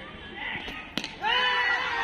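A bat strikes a ball with a sharp crack.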